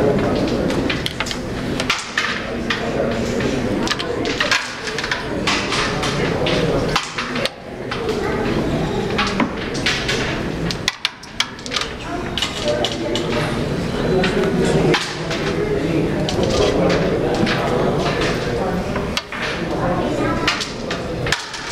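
Carrom pieces click sharply as a striker is flicked across a board.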